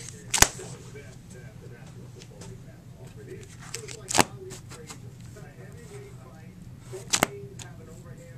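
Plastic binder pages crackle and flap as they are turned.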